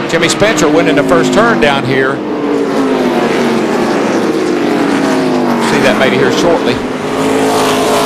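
Race car engines roar loudly at high speed, their pitch slowly falling as they pass.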